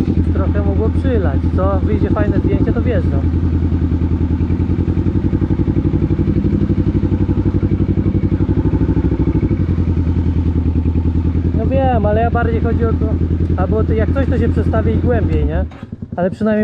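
A small engine idles with a steady, throbbing rumble.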